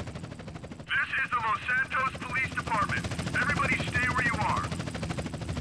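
A man calls out orders through a loudspeaker.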